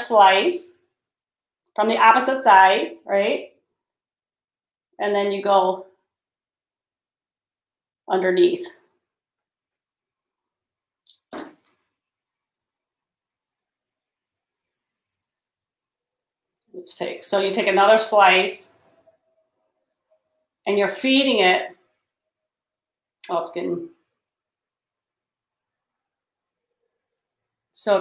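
A woman speaks calmly and close by, in short bursts with pauses.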